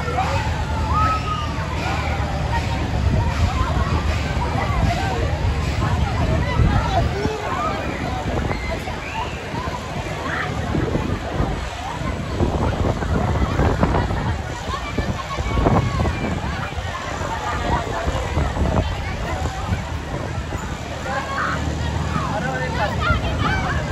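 Riders scream and shout excitedly on a spinning ride.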